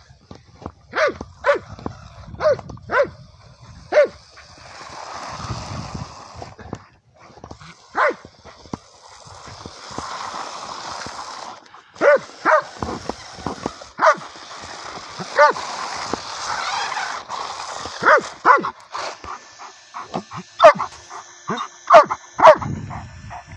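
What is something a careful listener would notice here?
A dog barks loudly again and again.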